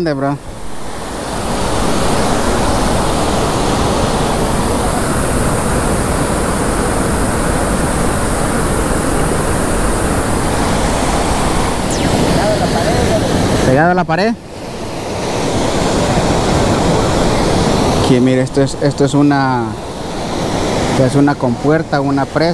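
Water gushes steadily from an outflow into a channel nearby.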